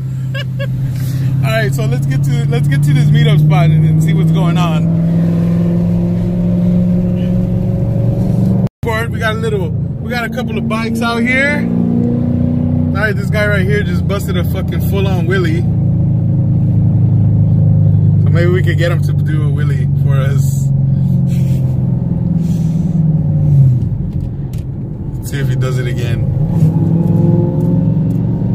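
A young man talks close by in the car.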